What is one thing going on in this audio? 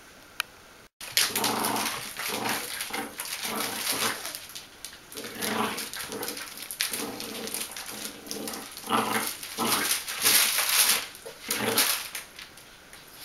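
A small dog growls playfully.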